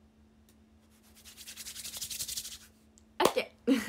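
Hands rub together close to a microphone.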